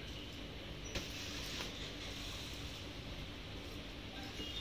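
Fabric rustles softly as a cloth is laid down.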